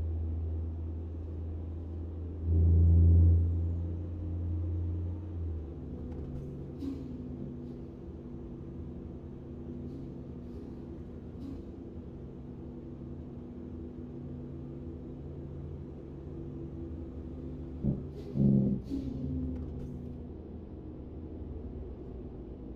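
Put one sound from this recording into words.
A truck engine hums steadily as it drives along a road.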